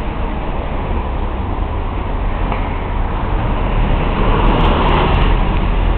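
A car drives by on a wet road, its tyres hissing.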